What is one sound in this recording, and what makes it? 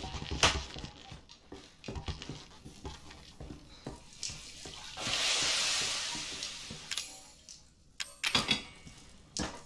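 Footsteps creak and thud on wooden floorboards.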